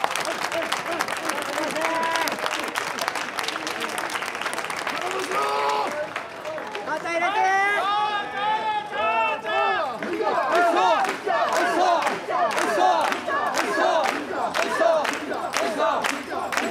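Hands clap in a steady rhythm.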